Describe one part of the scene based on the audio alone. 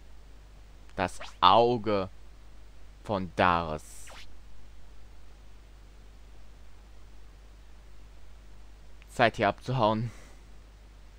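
A young man speaks in short bursts through a microphone.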